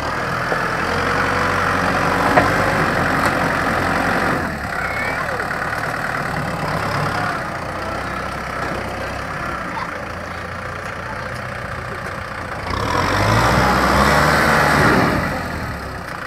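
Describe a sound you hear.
A tractor blade scrapes and pushes loose dirt.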